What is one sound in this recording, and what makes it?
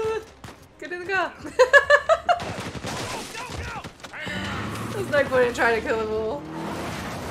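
A young woman laughs into a headset microphone.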